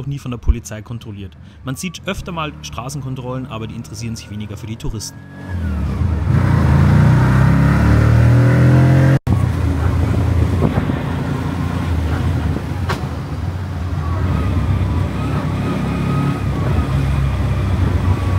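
Tyres hum on a wet road.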